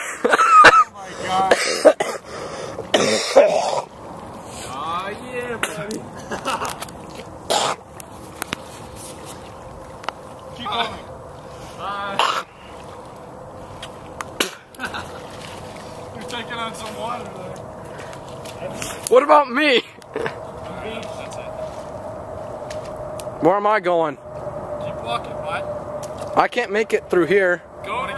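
Water splashes as a man wades through a shallow flooded area.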